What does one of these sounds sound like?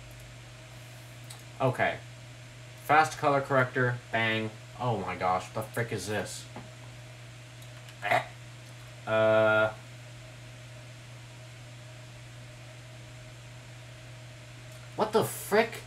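A computer mouse clicks softly.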